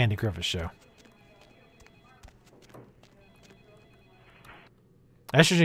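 Footsteps tap faintly on a hard floor.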